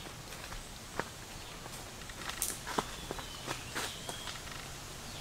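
Leaves rustle and twigs snap as a person walks through undergrowth.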